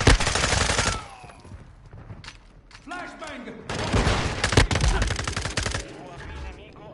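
Gunfire bursts and explosions boom loudly in a game.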